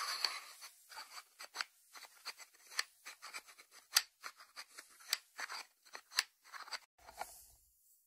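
Fingertips tap on a ceramic lid.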